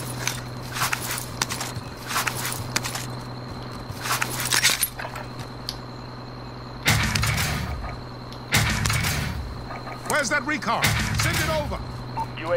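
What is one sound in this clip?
Gear rustles and clatters as items are picked up.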